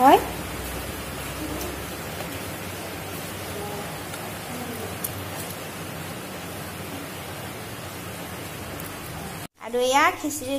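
Water pours from a metal cup into a pot.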